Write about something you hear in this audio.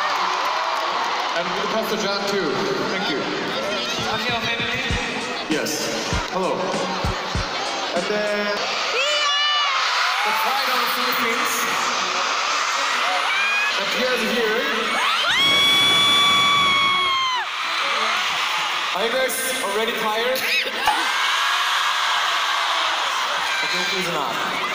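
A man speaks through loudspeakers in a large echoing arena.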